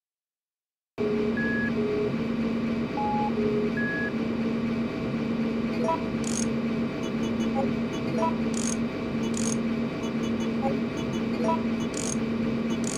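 A low electronic tone pulses steadily in an even rhythm.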